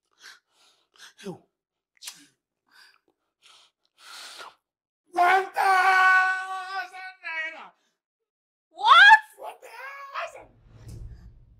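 A young woman speaks in a shocked, raised voice.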